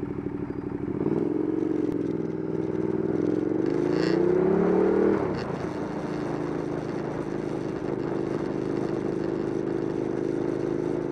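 A motorcycle engine revs up, rising in pitch, then drops back to a steady hum.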